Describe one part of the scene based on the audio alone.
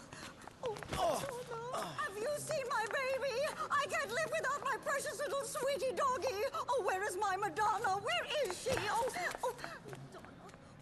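An elderly woman shouts shrilly and excitedly up close.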